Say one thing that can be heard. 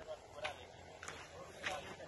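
Several men talk at a distance outdoors.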